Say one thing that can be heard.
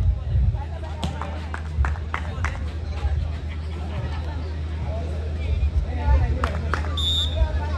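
A volleyball is struck hard with sharp slaps.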